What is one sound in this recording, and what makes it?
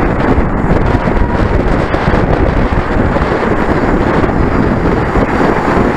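Strong wind roars loudly over the microphone outdoors.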